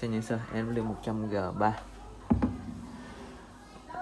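A handheld microphone is set down on a wooden table with a soft knock.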